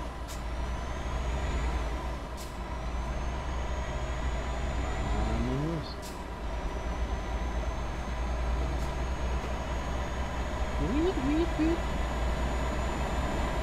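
A truck engine hums steadily as it drives along a highway.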